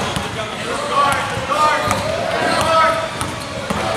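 A basketball bounces on a court floor in an echoing gym.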